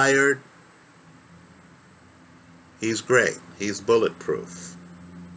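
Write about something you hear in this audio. A man speaks calmly and close up.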